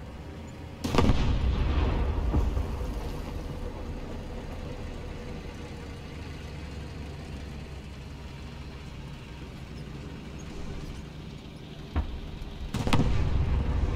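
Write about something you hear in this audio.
A tank cannon fires with a loud boom that echoes away.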